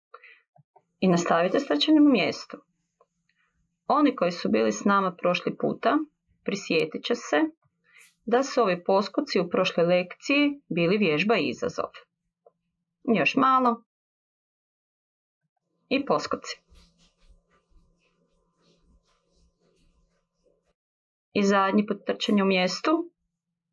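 A middle-aged woman speaks in short phrases through an online call.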